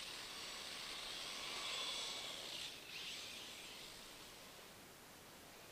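A small electric motor whines loudly, then fades as a toy car speeds away.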